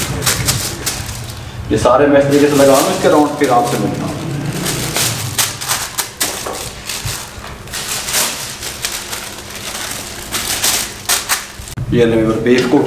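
Paper crinkles and rustles as it is pressed and folded by hand.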